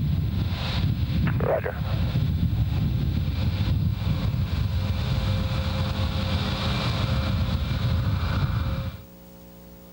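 A vehicle engine hums as it approaches across open ground.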